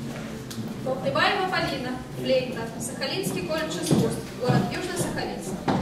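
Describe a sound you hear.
A young woman reads out clearly in a room.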